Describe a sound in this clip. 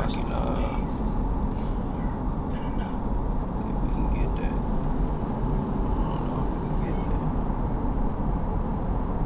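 A car's engine and tyres rumble steadily on a highway, heard from inside the car.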